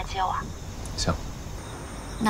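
A young man speaks quietly into a phone.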